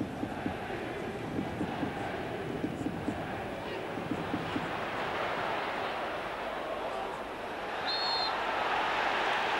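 A large stadium crowd roars steadily outdoors and swells louder toward the end.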